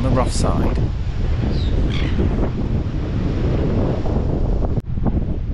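Waves break on rocks in the distance.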